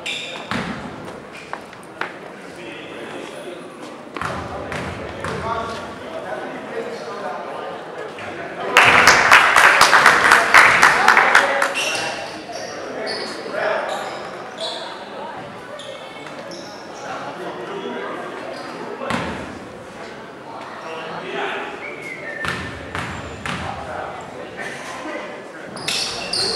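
A crowd in an echoing gym talks and murmurs.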